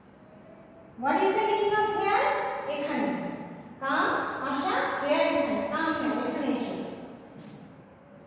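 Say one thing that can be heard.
A woman speaks clearly and slowly, as if teaching.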